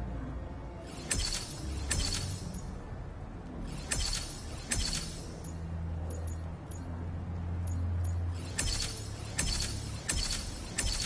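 Bright electronic chimes and clicks ring out from a game menu in quick bursts.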